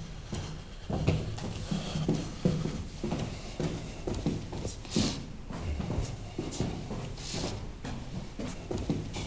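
Footsteps thud on stairs.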